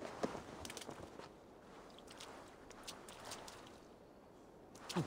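Straw rustles and crunches under soft footsteps.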